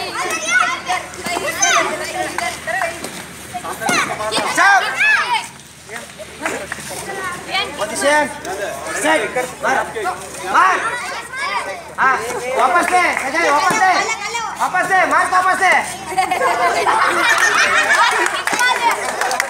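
A crowd of children shouts and cheers outdoors.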